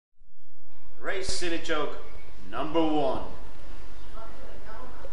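A man speaks casually close by.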